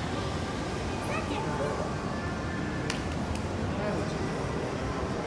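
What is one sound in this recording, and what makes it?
A young child talks close by.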